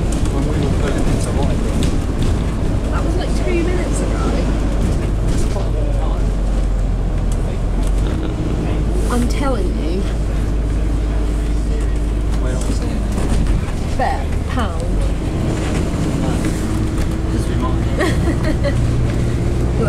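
A bus engine rumbles low, heard from inside the moving bus.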